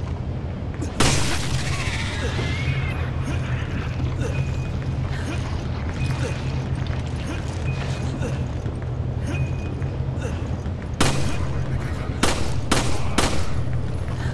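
A pistol fires several loud, sharp shots.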